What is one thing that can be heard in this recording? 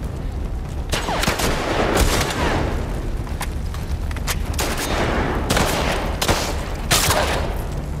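A rifle fires loud shots that ring out and echo.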